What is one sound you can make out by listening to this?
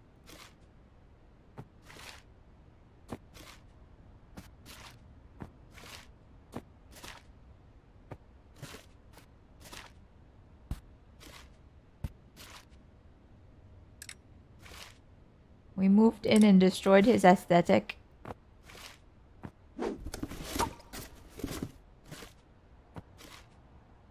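Small objects are set down with soft knocks.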